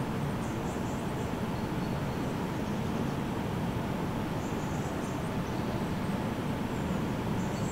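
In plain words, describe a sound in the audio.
A jet airliner rumbles steadily, high overhead and far off.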